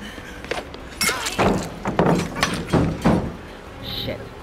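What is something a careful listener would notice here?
Wooden boards crash and splinter loudly.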